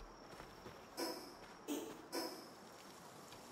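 Short electronic menu chimes sound.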